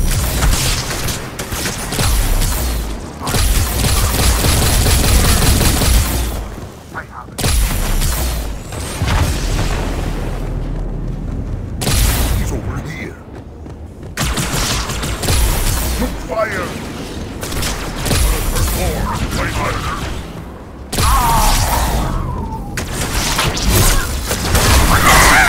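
Energy blasts crackle and explode nearby.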